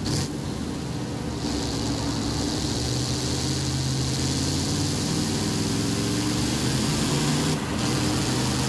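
Tyres roll and hiss on the road.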